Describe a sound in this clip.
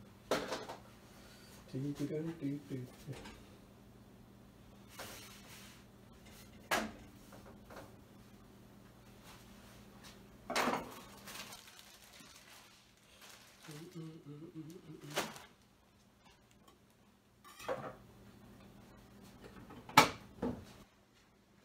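Utensils knock and clatter against a pan.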